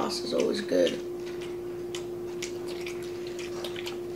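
A boy chews food noisily close to a microphone.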